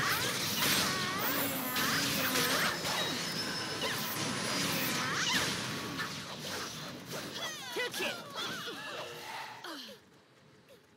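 Magic spells burst and crackle in rapid blasts.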